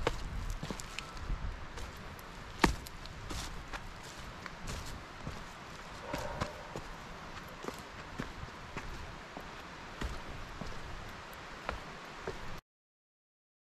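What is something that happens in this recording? Footsteps crunch through dry leaves and over stones.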